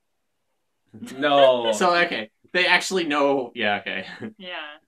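Young men and a young woman laugh together.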